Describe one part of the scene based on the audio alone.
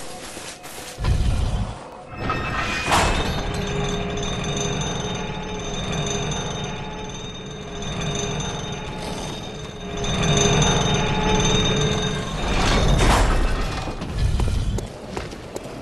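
A metal cage lift rumbles and clanks as it rises.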